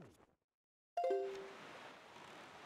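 Wind blows and waves wash steadily.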